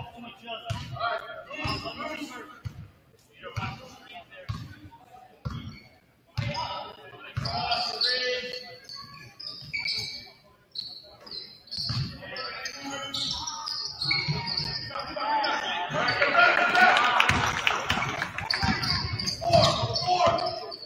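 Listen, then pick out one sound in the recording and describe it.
A basketball bounces on a wooden floor in steady thumps.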